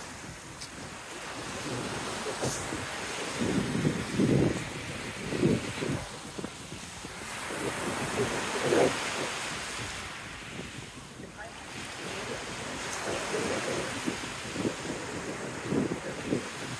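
Waves break and wash up onto a pebble beach in surges.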